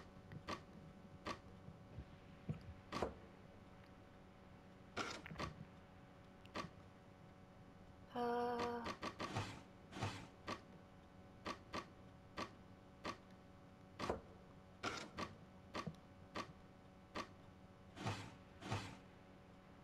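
Wooden blocks slide and click into place in a puzzle box.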